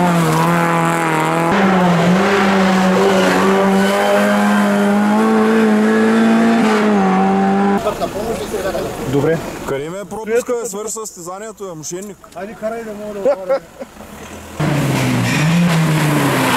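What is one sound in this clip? A rally car engine roars loudly, revving up and down.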